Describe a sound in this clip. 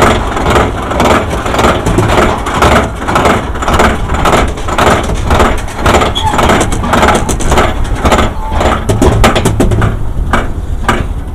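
A roller coaster car clanks steadily up a lift hill with a rhythmic clacking.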